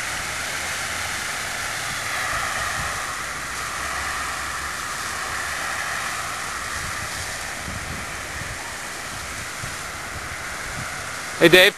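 A powerful jet of water sprays and hisses steadily outdoors.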